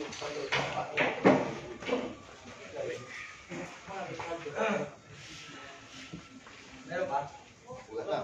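Several men talk and call out nearby with animation.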